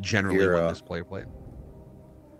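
A man speaks briefly and with animation into a microphone.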